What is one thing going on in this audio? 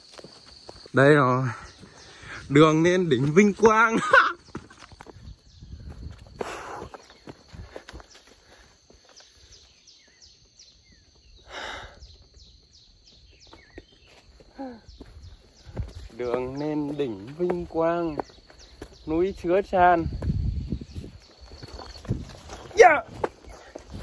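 A young man talks excitedly and close by.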